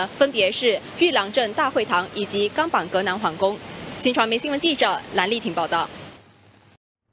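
A young woman speaks clearly into a microphone, reporting.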